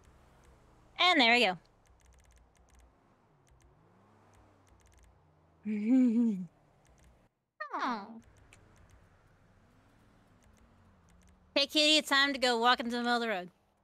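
A dog whines in short, high bursts.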